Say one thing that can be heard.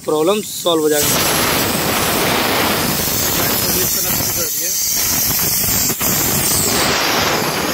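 Refrigerant gas hisses loudly and steadily through a hose.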